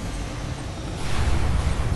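Laser weapons fire with an electric buzz.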